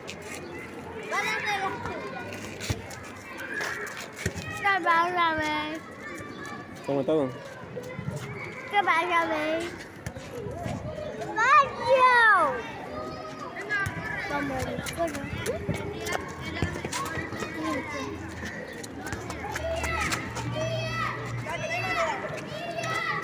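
Young children talk and babble excitedly close by.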